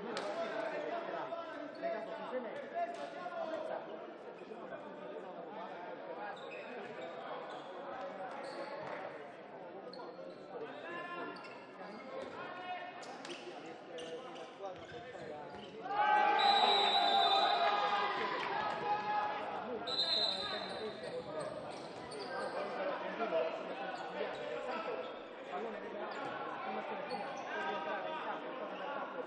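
Shoes squeak on a hard court in a large echoing hall.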